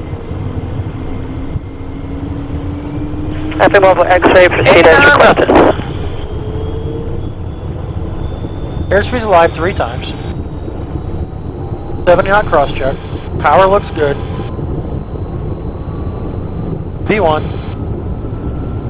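An engine whine rises slowly in pitch.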